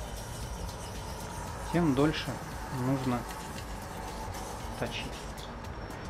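A knife blade scrapes against a sharpener.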